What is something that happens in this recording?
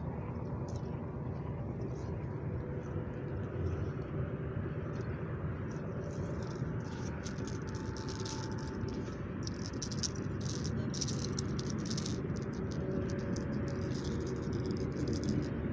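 Wind blows and rumbles against the microphone outdoors.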